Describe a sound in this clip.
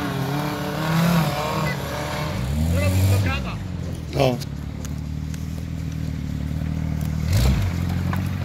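An off-road vehicle's engine revs hard as it climbs a rough dirt track.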